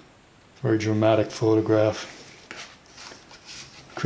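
A paper page turns over with a soft rustle.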